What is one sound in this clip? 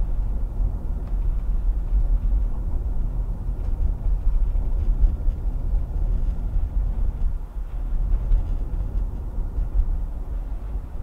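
Tyres rumble low and steadily on the road.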